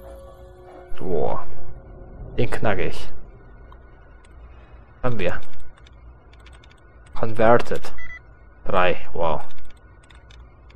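A computer terminal chirps and beeps loudly.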